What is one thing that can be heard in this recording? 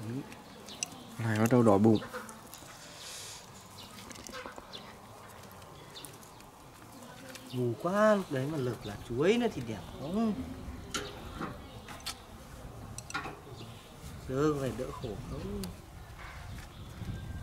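Metal tools click and tap against a wire grill.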